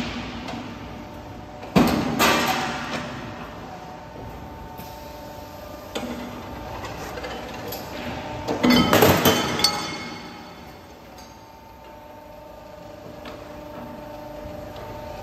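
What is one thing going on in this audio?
Machinery hums steadily.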